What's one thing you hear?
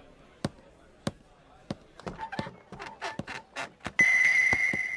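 Sandaled footsteps clack slowly on wooden boards.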